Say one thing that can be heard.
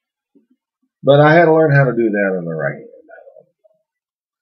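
A man speaks briefly and calmly, close by.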